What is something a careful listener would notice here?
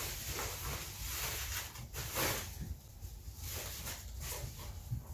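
Plastic wrapping rustles and crinkles as it is pulled off.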